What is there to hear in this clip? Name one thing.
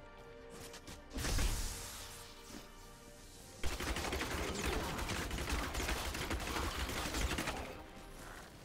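Game combat sounds clash and crackle with magic blasts.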